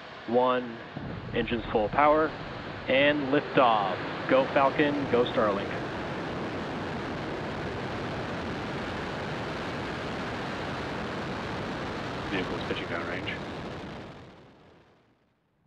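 A rocket engine roars loudly and steadily.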